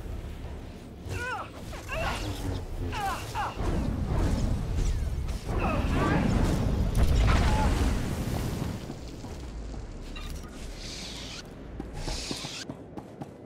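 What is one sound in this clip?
A lightsaber hums and swings.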